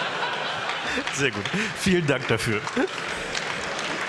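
Two men laugh into microphones.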